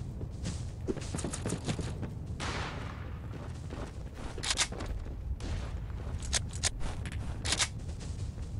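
Footsteps thud quickly on a wooden floor.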